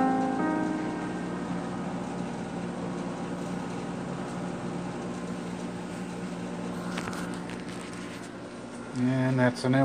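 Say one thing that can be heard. An electric keyboard plays chords that ring on and slowly fade.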